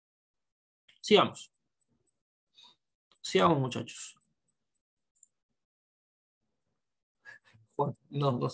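A young man speaks calmly into a microphone, in short bursts with pauses.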